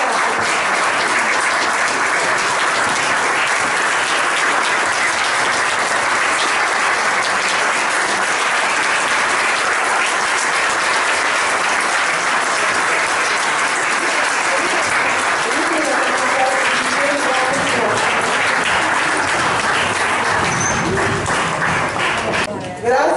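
A crowd applauds steadily in a room.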